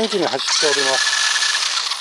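A small electric motor whines and revs up.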